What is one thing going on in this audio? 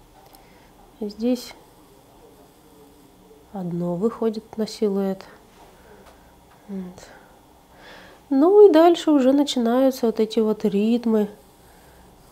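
A young woman speaks calmly into a microphone, in short phrases with pauses.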